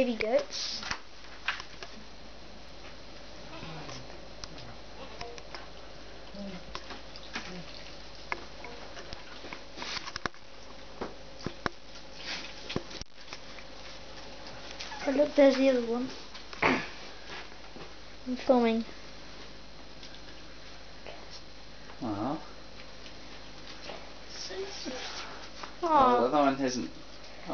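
A newborn goat bleats in short, quavering cries nearby.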